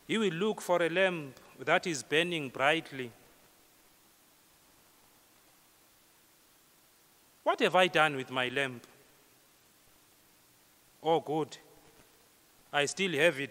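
A man speaks calmly through a microphone in an echoing hall, with pauses between phrases.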